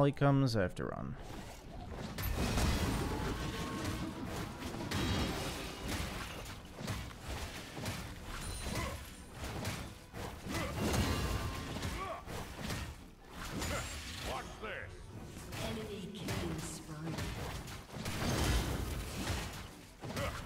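Magic spells whoosh and burst in a fast, busy fight.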